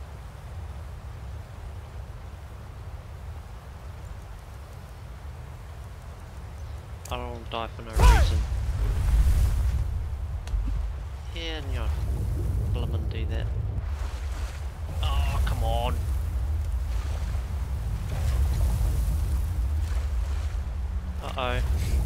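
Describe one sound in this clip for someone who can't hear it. Strong wind howls steadily, growing louder partway through.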